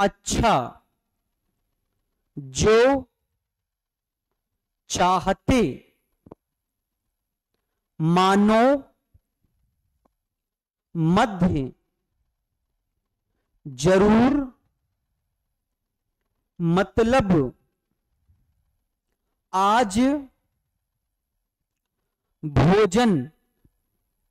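A man speaks in short, clear phrases with long pauses, close to a microphone.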